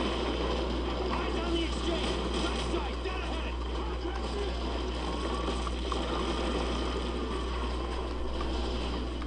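Distant battle noise rumbles steadily.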